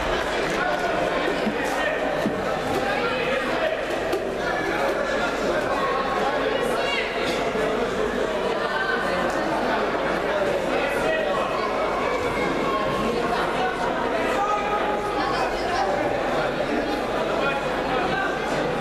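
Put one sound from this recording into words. A crowd of many men, women and children chatter in a large echoing hall.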